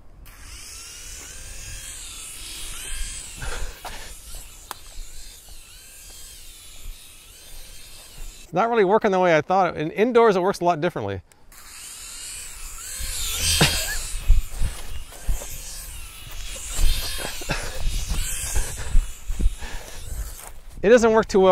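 A small drone buzzes and whines as it flies.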